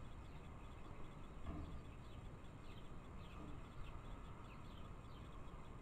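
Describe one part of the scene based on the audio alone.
Small birds chirp in quick high bursts nearby.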